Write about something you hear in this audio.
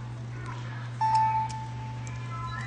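A handheld game console plays a short electronic chime.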